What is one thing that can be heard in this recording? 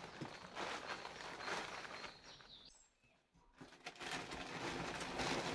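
A plastic sheet rustles and crinkles as it is handled.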